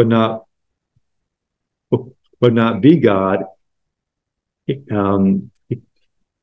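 A middle-aged man reads aloud calmly into a microphone, in short phrases with pauses.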